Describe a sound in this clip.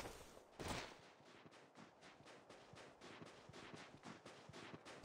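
Footsteps crunch quickly and evenly over snow.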